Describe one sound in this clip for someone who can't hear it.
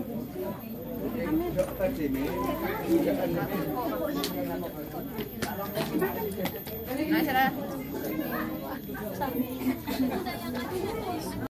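Women chatter nearby in a lively crowd.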